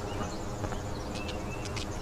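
Footsteps tread slowly on hard ground.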